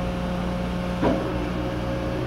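A metal clank rings out once from the machine.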